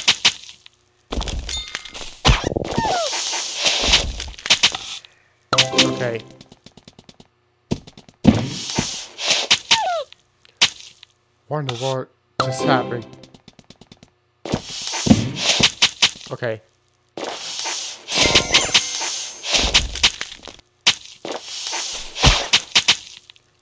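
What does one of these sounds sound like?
Cartoonish game sound effects chime, pop and whoosh in quick bursts.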